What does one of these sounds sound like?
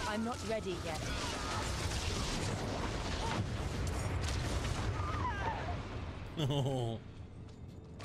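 Fiery blasts roar and crackle in a rumbling battle.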